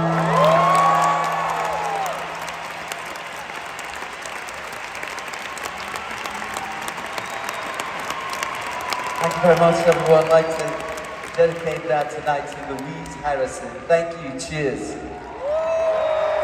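An acoustic guitar is strummed.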